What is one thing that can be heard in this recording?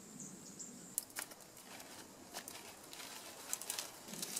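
Dry palm leaves rustle and crackle as they are woven by hand.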